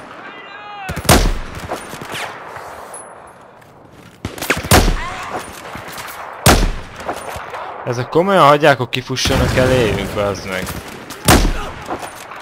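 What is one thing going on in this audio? A rifle fires single loud shots that ring out.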